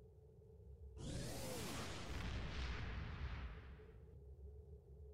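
A loud whooshing sound effect rushes in and fades away.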